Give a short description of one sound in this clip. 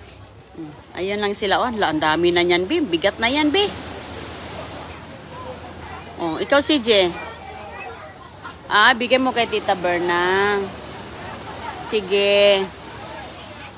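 A young girl talks and sings out in a high voice close by.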